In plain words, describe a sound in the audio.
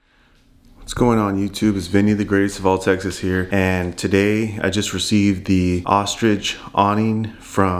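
A young man talks calmly and close up.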